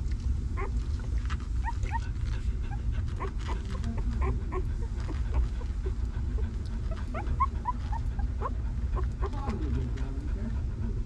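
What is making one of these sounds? Newborn puppies squeak and whimper close by.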